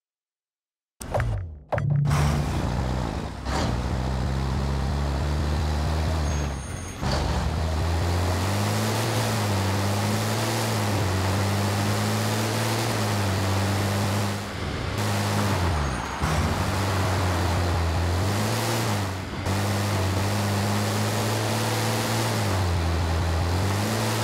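Tyres churn through loose sand.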